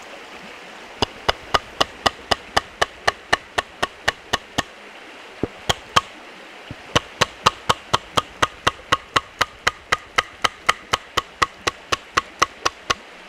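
A wooden mallet knocks rapidly and sharply on a wooden wedge in a log.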